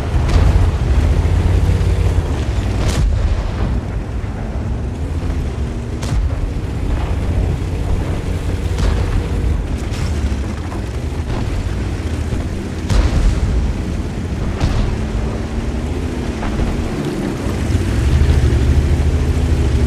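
Tank tracks clatter and squeal over the ground.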